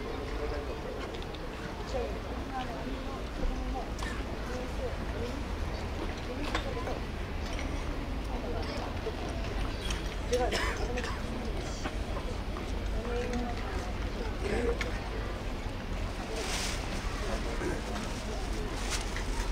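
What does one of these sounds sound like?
A crowd of men chatters and calls out outdoors.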